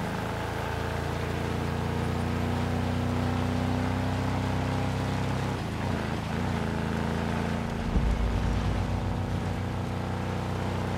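A buggy engine hums and revs steadily.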